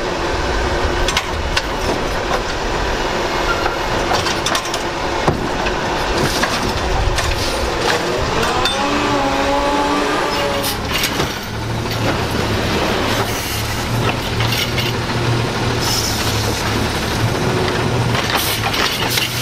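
A plastic bin bangs and clatters as it is emptied.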